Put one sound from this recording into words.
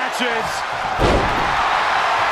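A heavy body slams down onto a wrestling ring with a loud thud.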